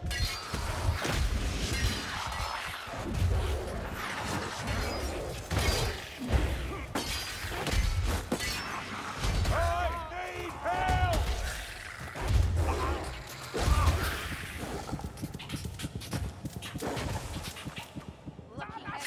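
Heavy weapon blows thud and slash again and again.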